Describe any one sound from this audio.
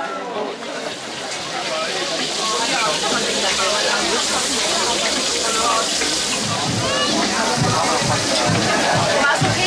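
Sausages sizzle on a hot grill.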